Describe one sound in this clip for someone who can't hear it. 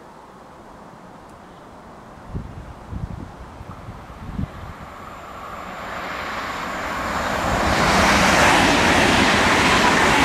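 A second high-speed train approaches and roars past close by.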